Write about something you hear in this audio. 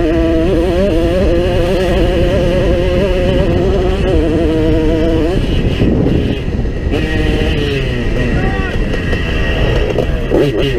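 Wind rumbles against the rider's helmet.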